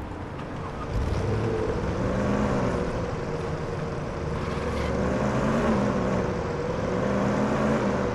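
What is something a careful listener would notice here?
A car engine hums and revs as the car drives off.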